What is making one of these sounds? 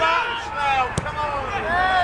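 A football is kicked with a thump.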